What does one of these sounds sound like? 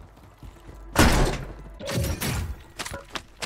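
A door bangs open loudly.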